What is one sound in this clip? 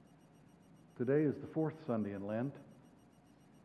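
An elderly man speaks loudly through a microphone.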